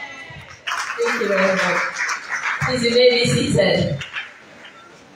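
A woman speaks with animation through a microphone and loudspeakers in an echoing hall.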